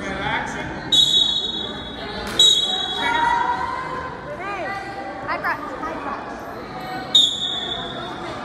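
A referee blows short, sharp whistle blasts.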